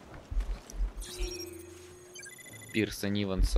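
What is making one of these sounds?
An electronic scanner beeps and chirps.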